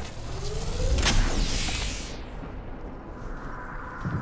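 A rifle clicks and rattles as it is raised.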